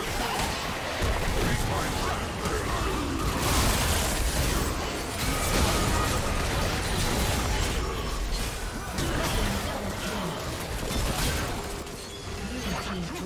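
Game spell effects whoosh and crash throughout a fight.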